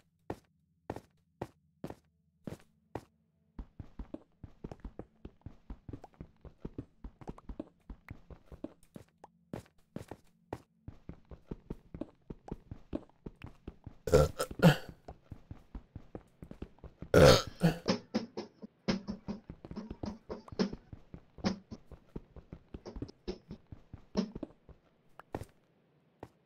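Rapid knocking and crunching of blocks being dug repeats steadily.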